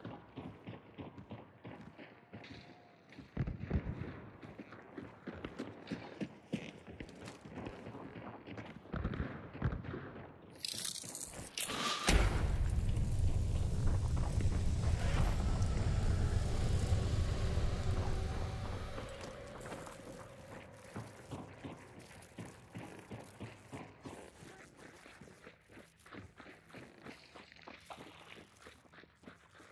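Footsteps thud and creak on wooden boards.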